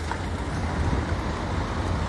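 Footsteps scuff on pavement nearby.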